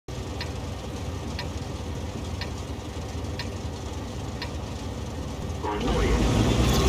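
A heavy tank engine idles with a low, steady rumble.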